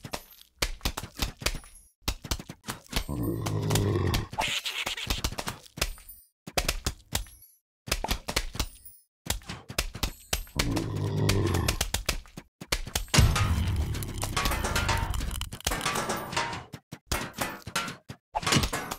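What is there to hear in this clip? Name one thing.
Cartoon plants pop as they fire peas again and again.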